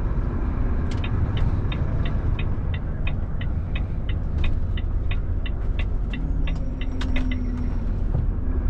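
A turn signal ticks in a steady rhythm.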